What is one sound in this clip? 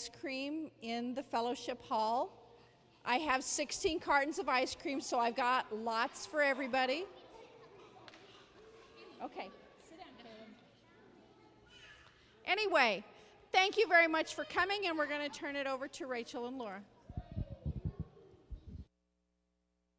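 A woman speaks with animation into a microphone, heard through loudspeakers in an echoing hall.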